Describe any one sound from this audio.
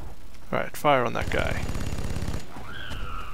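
A heavy gun fires a loud burst.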